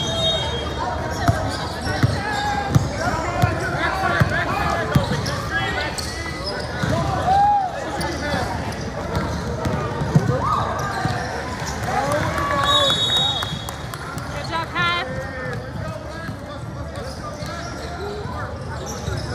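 Sneakers squeak on the hardwood court.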